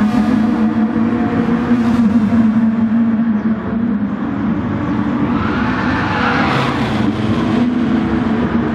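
Racing car engines roar loudly at high revs.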